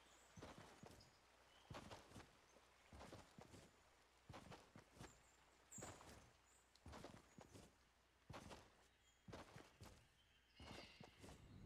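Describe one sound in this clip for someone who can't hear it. Soft footsteps pad across grass.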